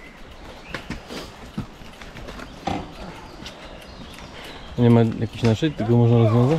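Bicycle parts rattle and clunk as riders push bikes over a log.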